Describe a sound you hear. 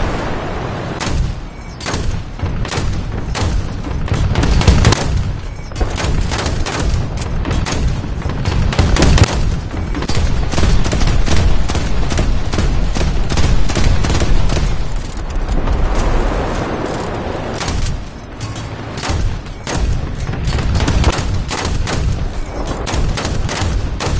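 An anti-aircraft autocannon fires rapid bursts of shots.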